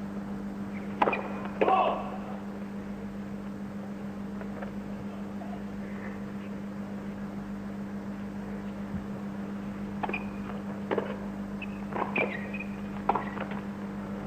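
Tennis racquets strike a ball with sharp pops.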